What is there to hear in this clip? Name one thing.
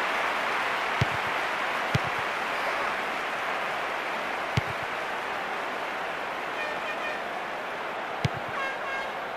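A football is kicked with sharp thuds, several times.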